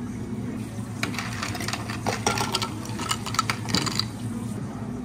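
Ice rattles inside a shaken jar.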